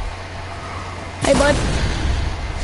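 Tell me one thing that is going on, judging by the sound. A rocket whooshes past in a video game.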